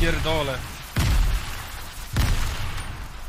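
Wooden walls thud into place in a game.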